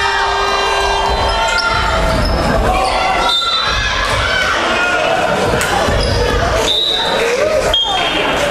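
Spectators cheer and chatter in an echoing hall.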